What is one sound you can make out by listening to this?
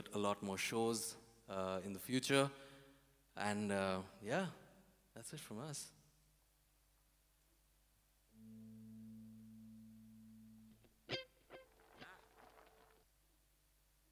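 An electric guitar strums.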